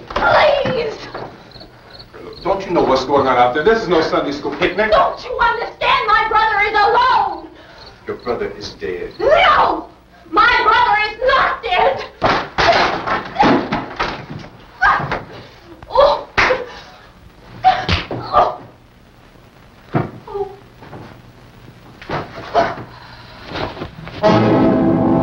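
A woman screams and cries out in distress.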